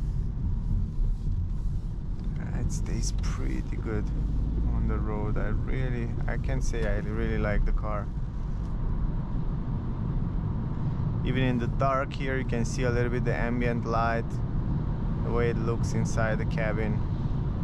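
Windscreen wipers swish across glass.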